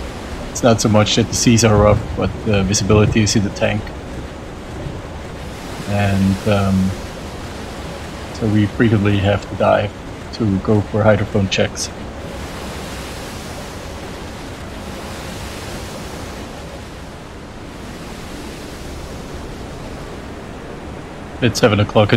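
Strong wind blows steadily outdoors.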